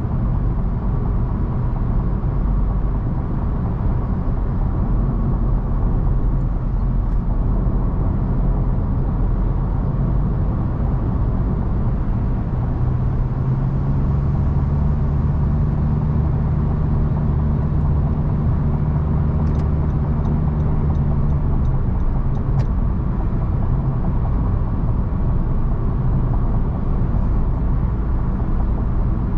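Tyres roar steadily on a highway from inside a moving car.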